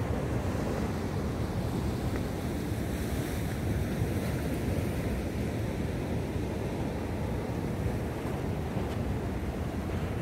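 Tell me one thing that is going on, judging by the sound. Wind blows roughly across the shore.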